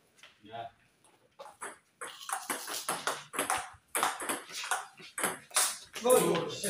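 A ping-pong ball clicks back and forth on a table and paddles.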